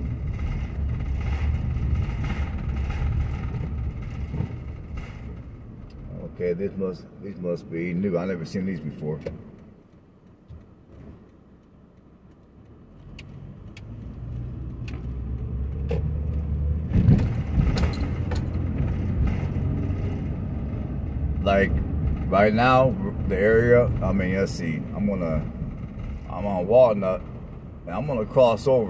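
A car engine hums low while driving along a road.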